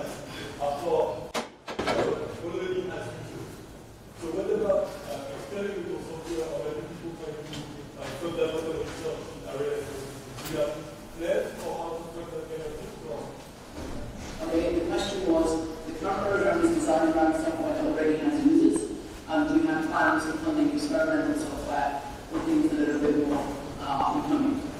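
A man speaks into a microphone in a large lecture hall.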